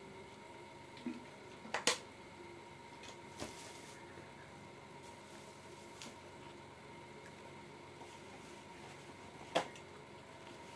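A plastic container crinkles and clicks close by.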